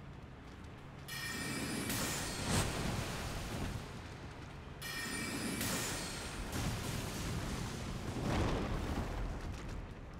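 A sword swings and strikes in a fight.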